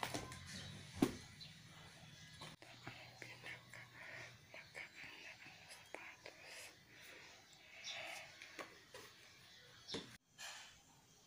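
Shoes rustle and knock against each other as they are handled.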